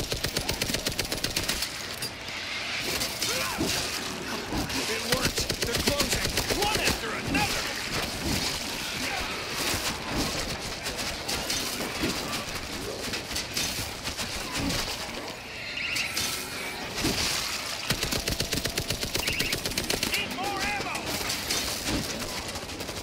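Zombies snarl and groan.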